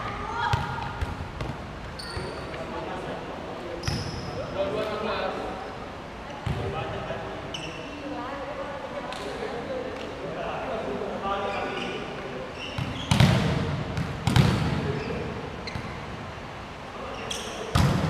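Young men and women call out to each other in a large echoing hall.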